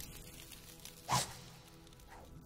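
A page rustles as a note is picked up.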